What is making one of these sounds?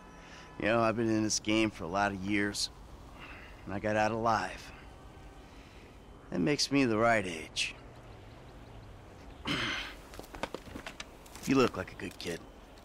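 A man speaks calmly and lazily, close by.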